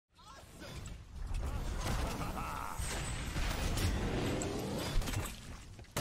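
Magic blasts and hits crackle and whoosh in a fast game battle.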